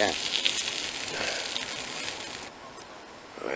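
A campfire crackles and hisses.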